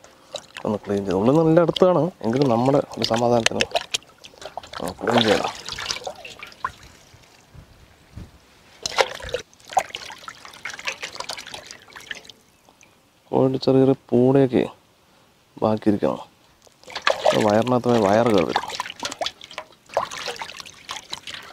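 Water sloshes and splashes in a metal pot.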